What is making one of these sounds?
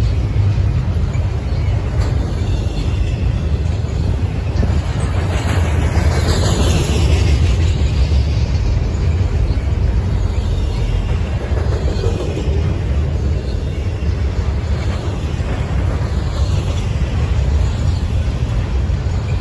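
A double-stack freight train rumbles past.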